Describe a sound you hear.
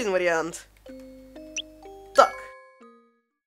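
Short electronic beeps chime in quick steps.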